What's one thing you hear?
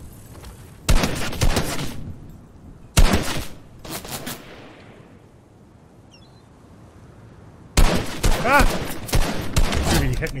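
Gunshots fire in bursts and echo.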